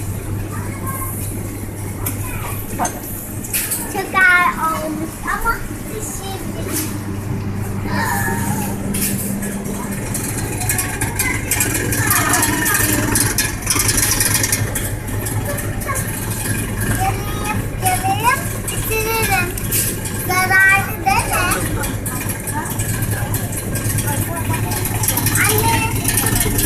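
A young girl talks and squeals close by.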